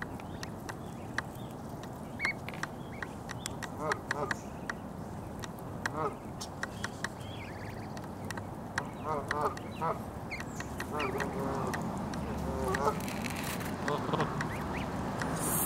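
Geese peck and tear at grass.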